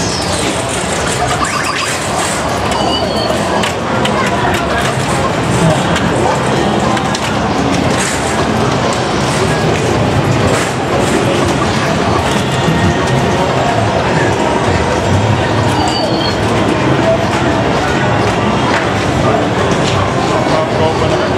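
A crowd of people chatters in a large, noisy hall.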